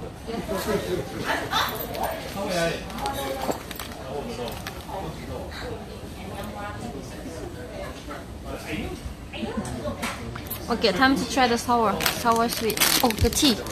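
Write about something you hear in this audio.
Paper wrappers rustle and crinkle in a young woman's hands.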